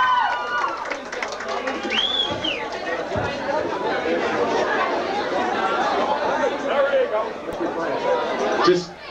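A rock band plays with loud amplified guitars and drums.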